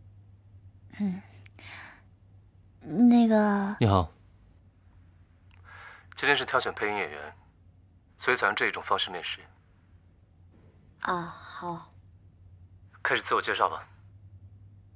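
A young woman speaks calmly and close into a microphone.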